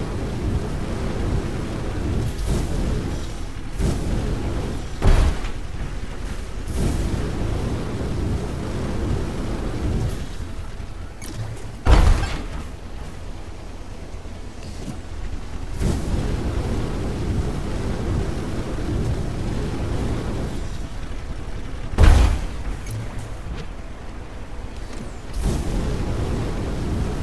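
Heavy mechanical footsteps thud steadily as a large robot walks.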